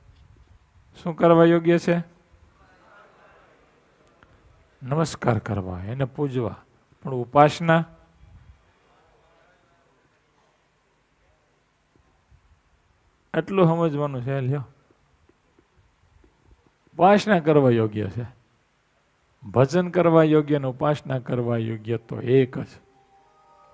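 A middle-aged man speaks calmly and with animation into a headset microphone, pausing between phrases.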